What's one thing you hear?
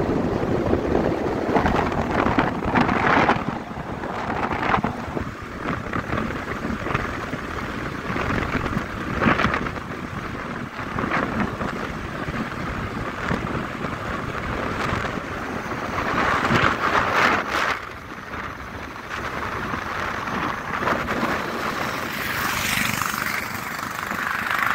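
Wind rushes and buffets past a microphone on a moving vehicle.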